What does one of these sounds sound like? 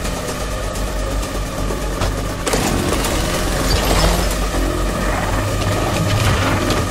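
A spinning blade weapon whirs and grinds steadily.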